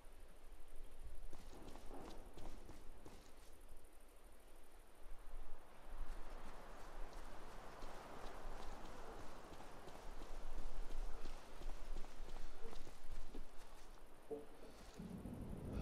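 Footsteps crunch softly on a road.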